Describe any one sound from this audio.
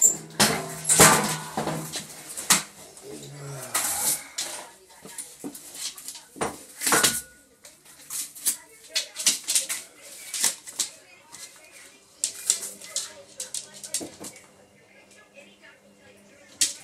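A dog rustles and tears through scattered paper and cardboard.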